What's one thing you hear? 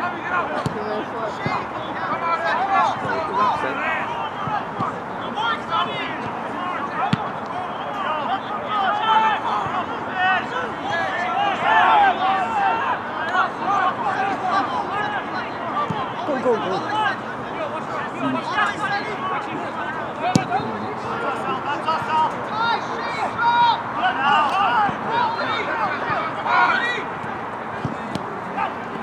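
Players shout to each other across the field.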